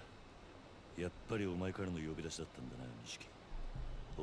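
A man speaks calmly into a telephone.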